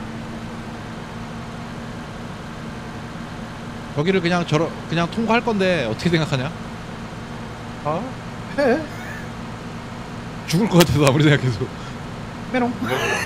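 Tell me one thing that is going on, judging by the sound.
A truck engine hums steadily as the vehicle drives along a road.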